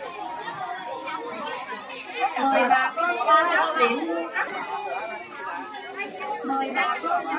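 A busy outdoor market crowd of men and women chatters all around.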